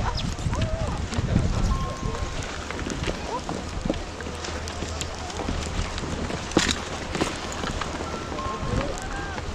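Snowboards and skis scrape over snow.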